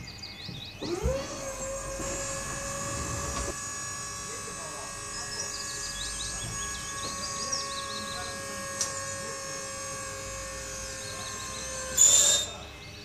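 An electric motor hums steadily as a scissor lift rises.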